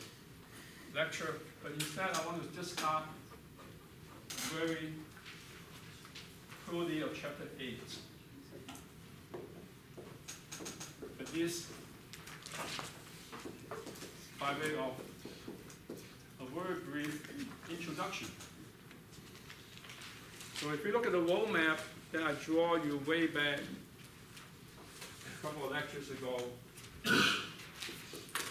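A middle-aged man talks calmly into a microphone, in a room with some echo.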